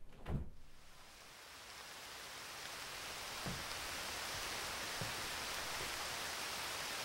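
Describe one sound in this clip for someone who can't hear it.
Outdoor hiss swells steadily as the window opens.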